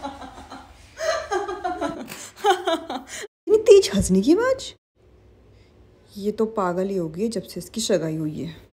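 A young woman talks with animation close by.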